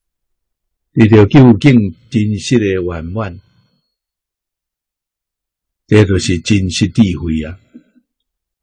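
An elderly man speaks calmly and warmly into a close microphone, in two short phrases.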